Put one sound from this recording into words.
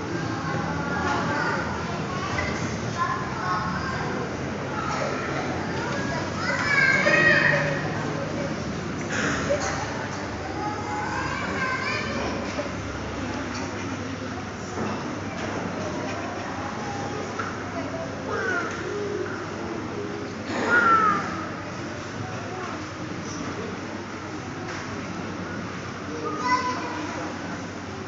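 A group of children chatters in a large echoing hall.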